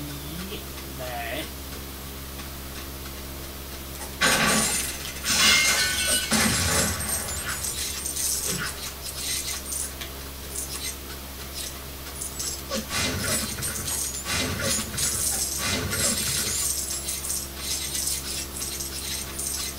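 A video game's music and effects play from a television loudspeaker in a room.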